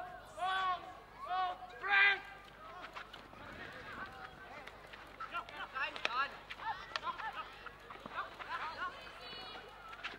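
Teenage boys shout to each other across an outdoor field.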